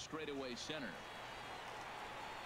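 A crowd cheers in a large stadium.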